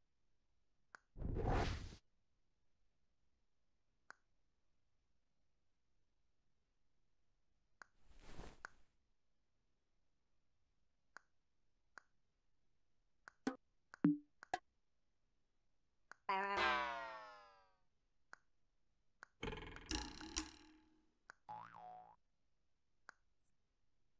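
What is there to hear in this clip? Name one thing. Soft clicks sound as buttons are pressed.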